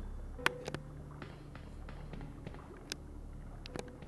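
Footsteps echo on a hard floor.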